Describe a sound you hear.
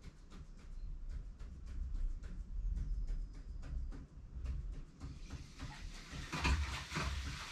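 A marker taps and squeaks on a board in short, quick strokes.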